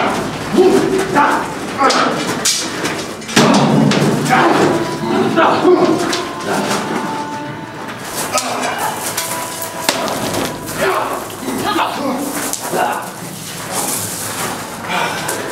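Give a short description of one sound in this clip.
Men shout and yell close by in an echoing tunnel.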